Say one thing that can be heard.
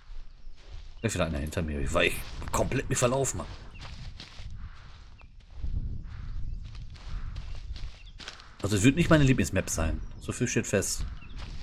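A middle-aged man talks with animation into a close microphone.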